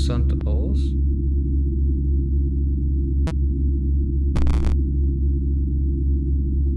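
Low, droning game music hums steadily.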